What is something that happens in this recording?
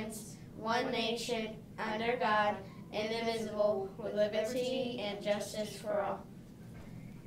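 A young boy recites in unison with a girl, close by.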